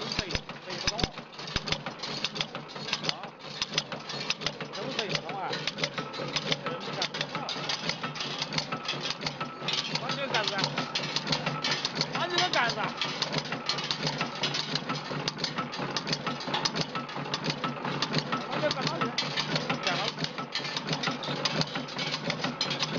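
A machine clatters and rattles steadily with rapid metallic knocks.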